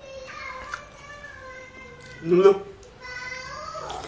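A man sips and gulps a drink from a can.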